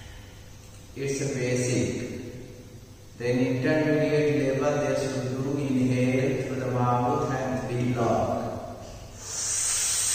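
A man speaks calmly and close by.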